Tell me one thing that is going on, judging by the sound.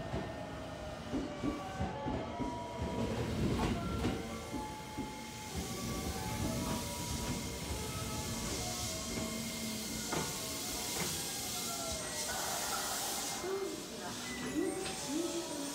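Train brakes squeal with high, wavering tones.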